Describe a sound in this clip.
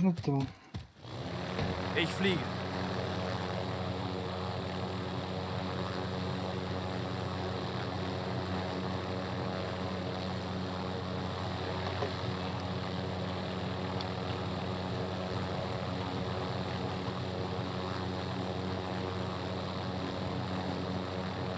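A helicopter's engine and rotor drone steadily close by.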